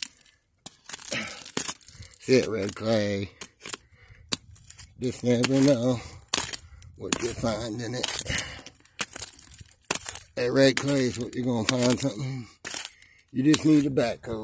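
A rock hammer scrapes and knocks against loose gravel.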